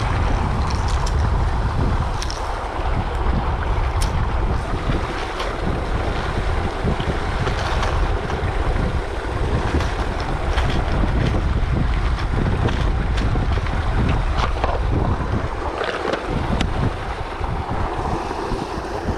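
A boat motor hums steadily while moving across water.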